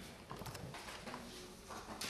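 A pen scratches on paper as a document is signed.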